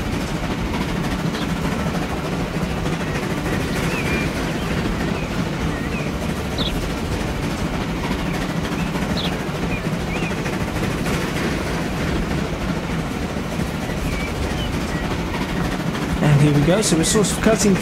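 A steam locomotive chugs steadily along the track.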